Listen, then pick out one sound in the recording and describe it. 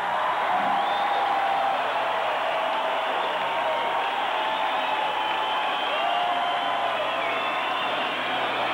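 A rock band plays loud, distorted music through big loudspeakers.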